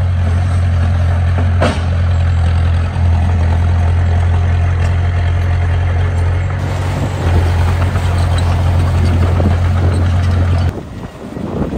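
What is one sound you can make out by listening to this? A bulldozer engine rumbles loudly and steadily nearby.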